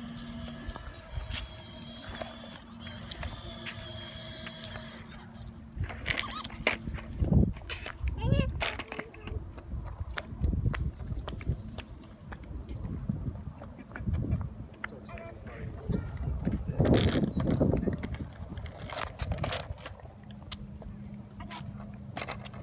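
Plastic scooter wheels rattle on concrete.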